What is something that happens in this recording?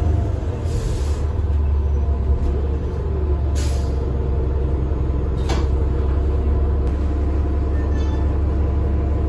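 A bus engine idles with a deep, steady rumble.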